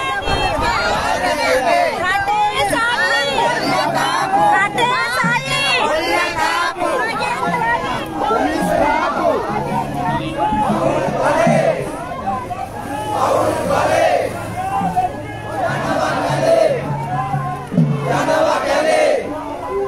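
A crowd of marchers chants slogans loudly outdoors.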